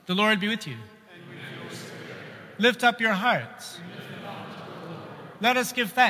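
A man sings out in a chanting voice through a microphone, in an echoing hall.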